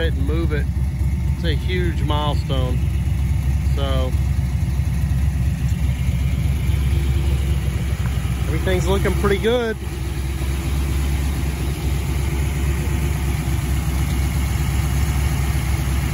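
A car engine idles with a steady, deep rumble close by.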